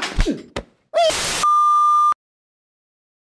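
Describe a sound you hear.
A steady high beep tone sounds.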